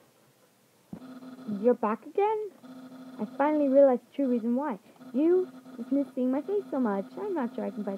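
Chiptune game music plays with a steady beeping melody.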